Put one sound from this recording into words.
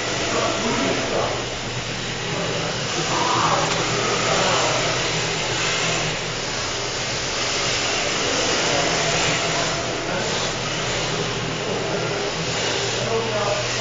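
Toy car tyres squeal on a smooth floor.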